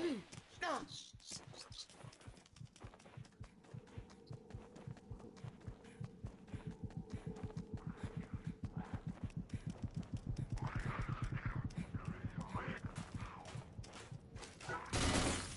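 Quick footsteps patter on hard stone ground.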